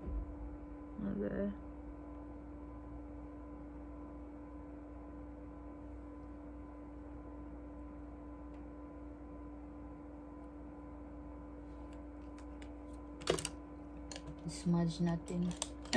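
A woman speaks briefly and softly, close to the microphone.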